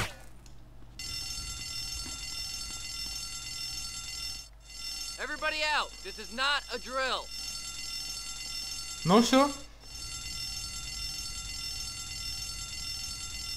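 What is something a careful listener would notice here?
A fire alarm rings steadily.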